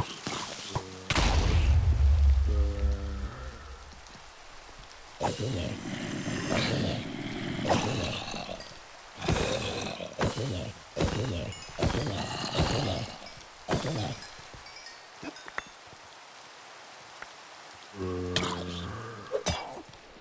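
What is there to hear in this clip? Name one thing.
Zombies groan low and drawn out.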